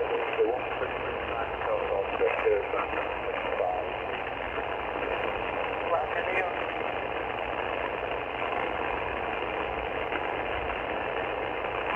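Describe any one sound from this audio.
A shortwave radio hisses with steady static through its small loudspeaker.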